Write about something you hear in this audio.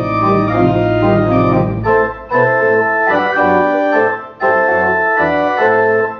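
A pipe organ plays full chords with brief pauses between phrases.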